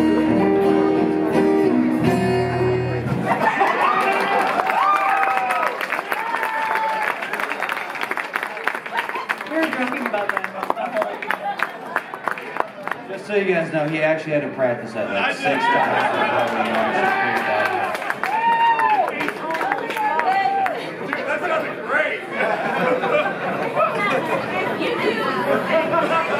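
Acoustic guitars strum steadily.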